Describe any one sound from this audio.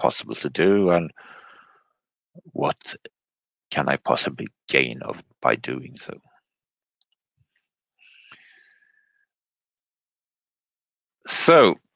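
A man speaks calmly through a microphone over an online call.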